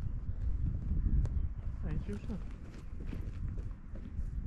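Footsteps swish through long grass.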